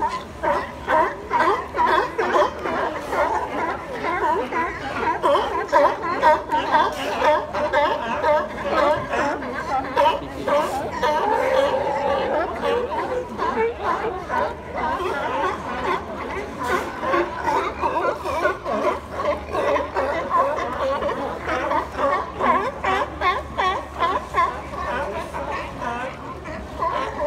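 A colony of sea lions barks and honks.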